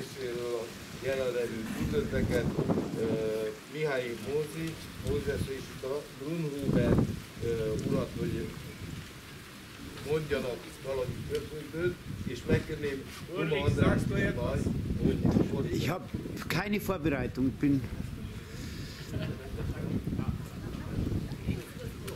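A man chants steadily outdoors, a little way off.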